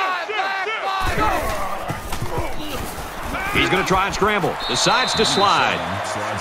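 Football players collide in a tackle.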